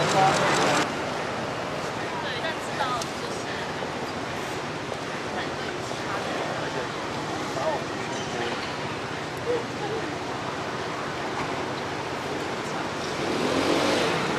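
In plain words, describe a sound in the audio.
A young woman speaks softly into several microphones.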